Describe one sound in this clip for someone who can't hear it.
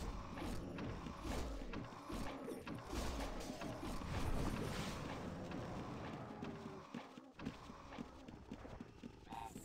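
Magic blasts and blows crackle and thud in a battle with dragons.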